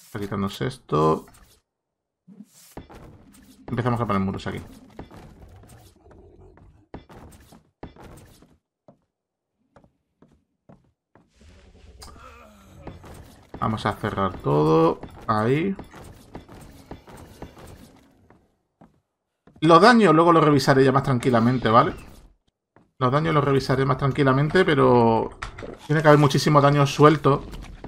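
A man talks with animation, close to a microphone, with pauses.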